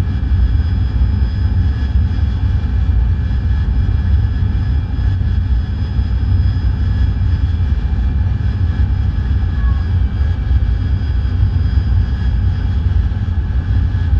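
A jet engine roars steadily from inside a cockpit.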